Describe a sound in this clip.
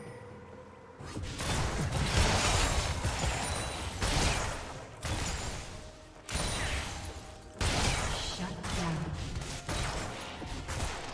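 Game spell effects whoosh and blast during a fight.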